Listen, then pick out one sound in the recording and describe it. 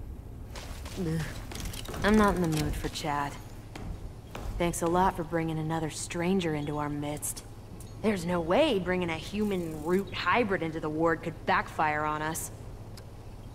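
A young woman speaks in a weary, curt tone.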